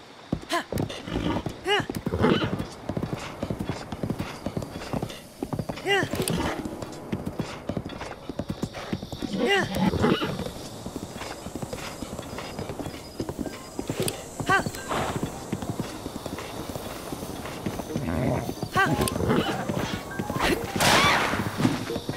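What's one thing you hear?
A horse gallops with quick, heavy hoofbeats.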